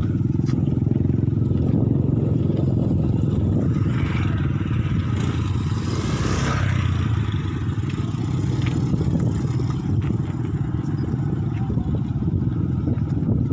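Footsteps shuffle on a stone path.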